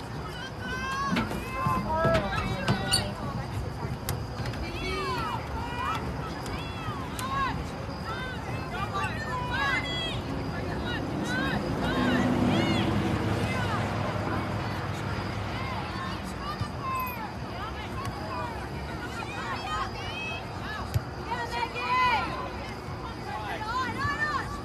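Spectators cheer and call out nearby outdoors.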